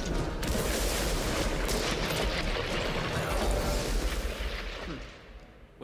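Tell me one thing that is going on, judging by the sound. Gunshots boom rapidly with loud crashing blasts.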